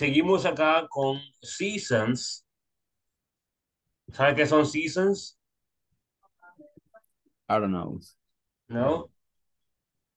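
A young man speaks calmly through an online call, in short phrases with pauses.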